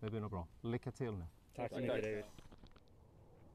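Several men talk outdoors.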